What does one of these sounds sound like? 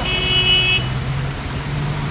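A van engine rumbles close by.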